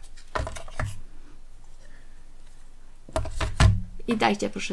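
Stiff card rustles and taps as it is set down on a mat.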